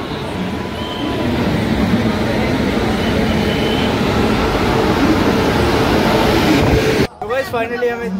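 A large crowd chatters in a noisy, echoing station hall.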